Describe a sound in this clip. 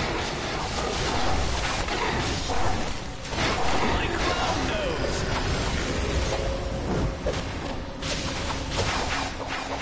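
Energy blasts and impacts crackle and boom in a busy fight.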